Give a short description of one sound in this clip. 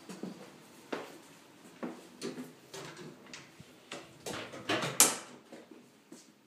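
A wooden door swings open with soft knocks.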